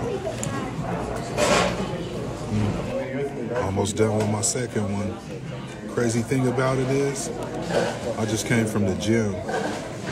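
A man chews food.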